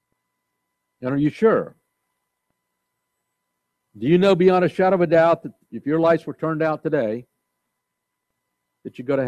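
An elderly man speaks slowly and deliberately through a microphone, with long pauses.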